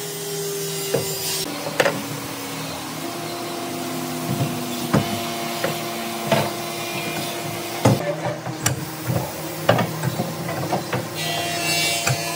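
Metal bar clamps clank and knock against wood.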